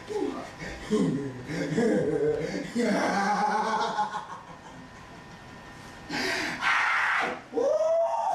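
A man speaks with emotion, close by.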